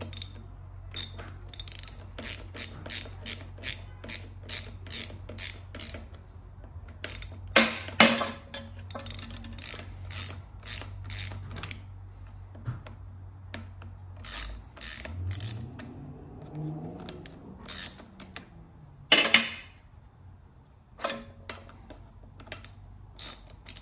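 A ratchet wrench clicks rapidly as it turns a bolt.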